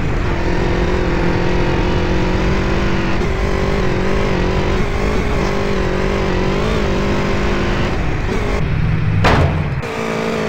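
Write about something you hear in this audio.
A motorbike engine hums steadily, echoing in a tunnel.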